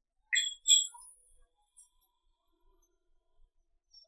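Billiard balls click together.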